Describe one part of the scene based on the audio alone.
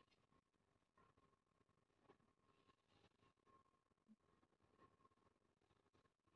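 A leash drags softly across a hard floor.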